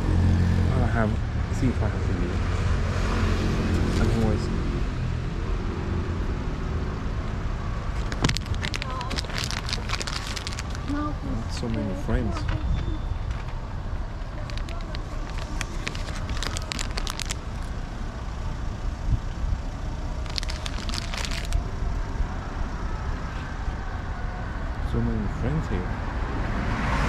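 Stray cats meow.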